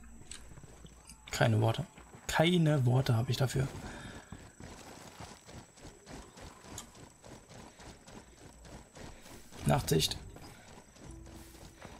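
Footsteps crunch softly on rocky ground.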